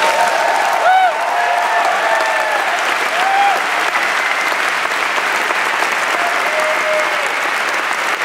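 People in an audience cheer and whistle.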